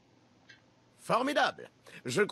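A man with a low voice speaks calmly.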